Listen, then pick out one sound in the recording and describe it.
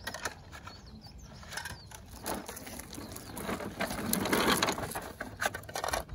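Small plastic wheels roll over concrete.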